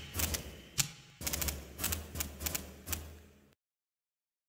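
Menu selections click sharply, one after another.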